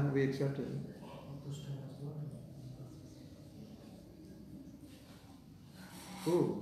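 A middle-aged man speaks calmly nearby, with pauses.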